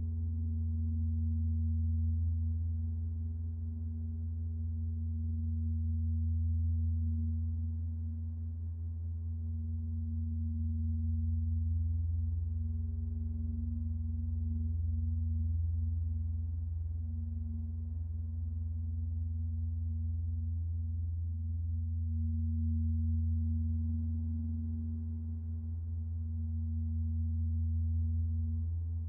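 A modular synthesizer plays a deep, steady drone that slowly swells and fades.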